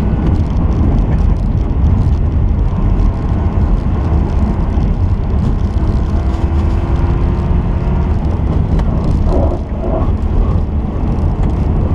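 Studded tyres rumble and crunch over ice.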